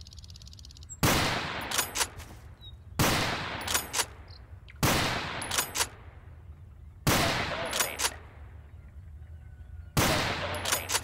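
A shotgun fires loud booming shots outdoors, each echoing away.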